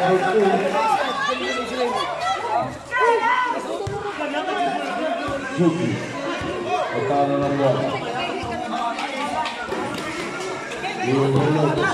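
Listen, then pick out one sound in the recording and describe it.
A crowd of spectators chatters and shouts nearby.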